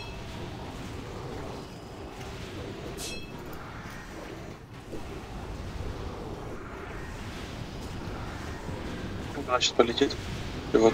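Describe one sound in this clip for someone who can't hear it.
Magic spell effects crackle and whoosh in a busy battle.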